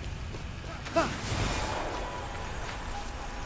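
A sudden whoosh sweeps past as a figure dashes forward.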